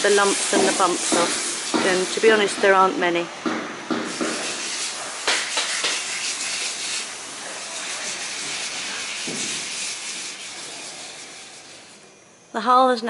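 A sanding tool hisses steadily against a hard surface.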